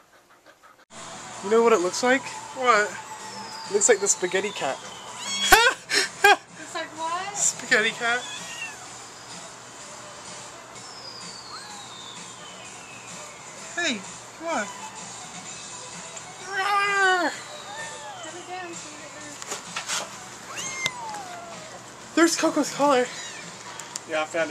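A kitten mews loudly and shrilly.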